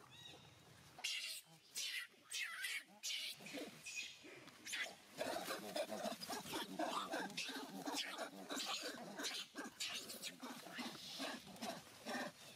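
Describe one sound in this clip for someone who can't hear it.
Dry leaves rustle and crackle as monkeys scamper over the ground.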